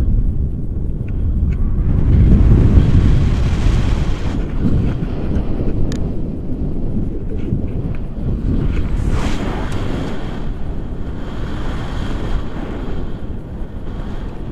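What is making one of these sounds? Wind rushes and buffets loudly against a microphone throughout.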